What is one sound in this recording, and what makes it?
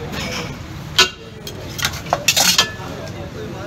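Metal knocks and rattles sharply.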